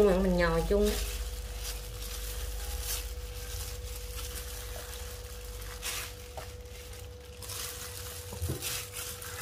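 A gloved hand rubs and crumbles flour with soft rustling.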